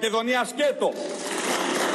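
A man speaks forcefully into a microphone in a large hall.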